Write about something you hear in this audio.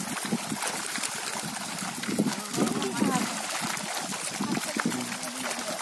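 Many fish thrash and splash at the water's surface.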